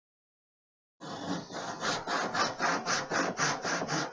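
A hand plane shaves along a wooden board in quick, repeated strokes.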